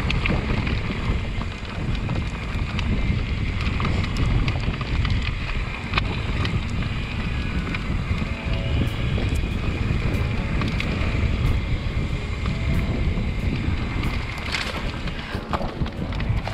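Dry grass stalks brush and scrape against a bike.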